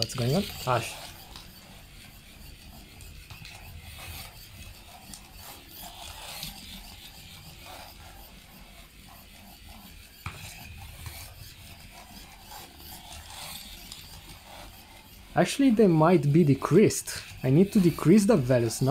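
A small robot car's electric motors whir softly as it drives along.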